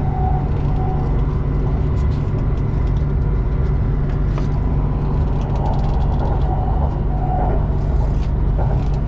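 An elevated train rumbles and rattles steadily along its track.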